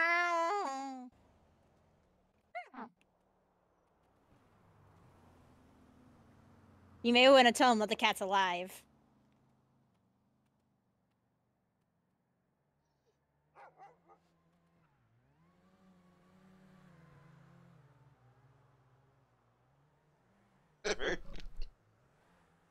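A dog whines and yelps in high, wavering cries.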